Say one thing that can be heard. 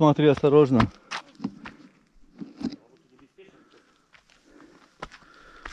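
Footsteps crunch on a dirt and gravel path.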